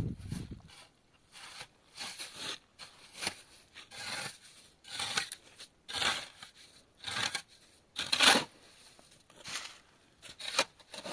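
A shovel scrapes and mixes wet cement on hard ground.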